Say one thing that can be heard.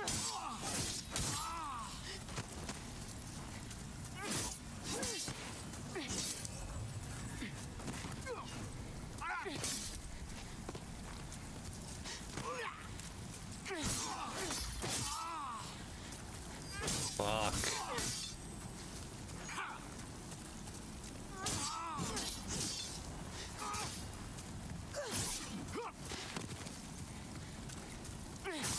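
Swords clash and slash in quick bursts.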